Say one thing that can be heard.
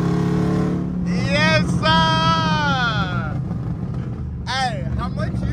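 A high whine rises and falls from the engine as the car speeds up and eases off.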